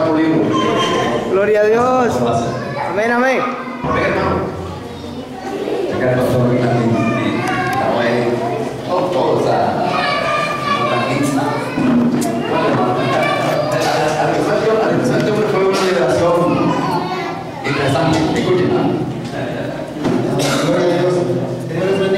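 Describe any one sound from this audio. A middle-aged man speaks with animation through a microphone in an echoing hall.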